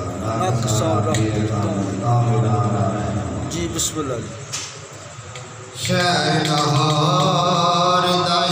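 An elderly man sings through a microphone, close by, with a pause midway.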